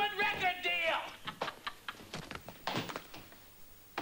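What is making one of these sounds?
Hands pat a back during a hug.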